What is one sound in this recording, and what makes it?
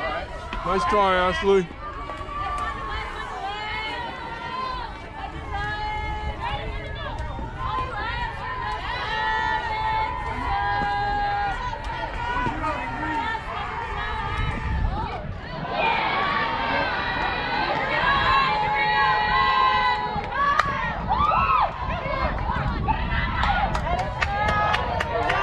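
Young girls cheer and chant loudly outdoors.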